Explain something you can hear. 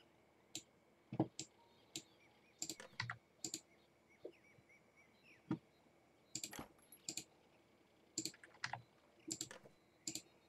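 Short game interface sounds click and pop now and then.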